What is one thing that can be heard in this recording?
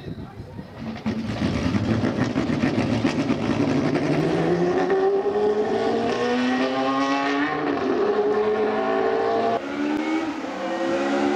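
A single racing car engine screams past at high revs.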